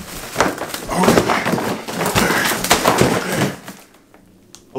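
A plastic bag rustles and crinkles loudly.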